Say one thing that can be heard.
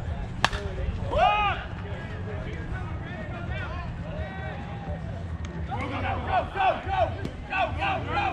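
Men and women cheer and shout loudly.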